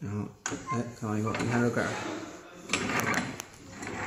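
A key clicks as it turns in a metal lock.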